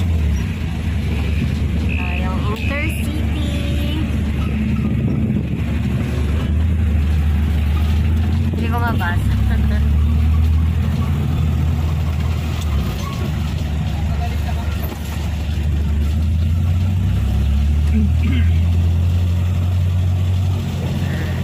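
A vehicle engine rumbles low and steady while driving along a street.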